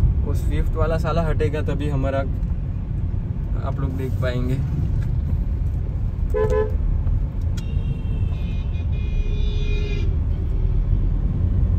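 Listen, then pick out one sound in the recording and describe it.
A car engine hums and tyres rumble steadily on the road, heard from inside the car.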